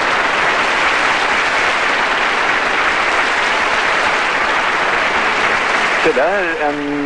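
A large audience applauds loudly in a big hall.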